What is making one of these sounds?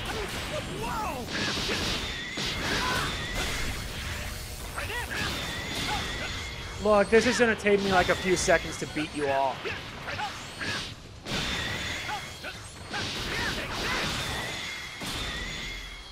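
Energy blasts whoosh and crackle in rapid bursts.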